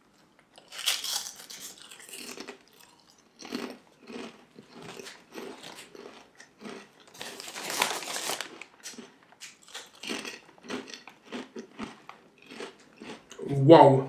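A young man crunches crisps loudly.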